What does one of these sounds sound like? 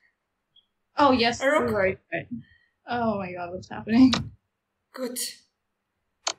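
A young woman talks and laughs over an online call.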